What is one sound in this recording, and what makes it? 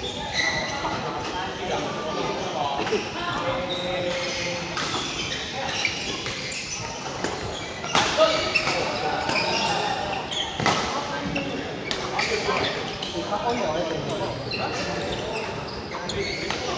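Badminton rackets hit a shuttlecock in a large echoing hall.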